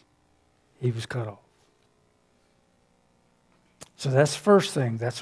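A middle-aged man speaks calmly and firmly through a headset microphone.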